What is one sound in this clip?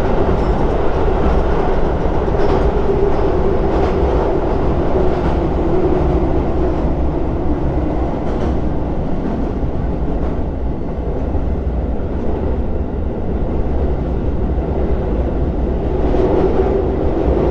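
A train rumbles steadily across a bridge.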